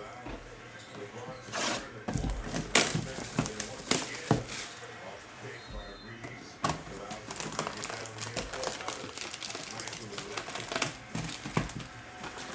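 Cardboard taps and scrapes as a box is handled.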